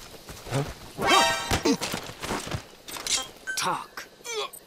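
A brief scuffle breaks out with sharp thuds.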